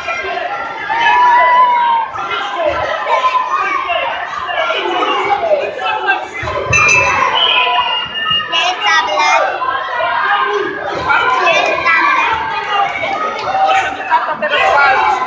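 Men shout encouragement loudly in an echoing hall.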